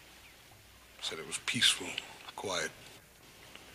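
A middle-aged man speaks in a low, serious voice.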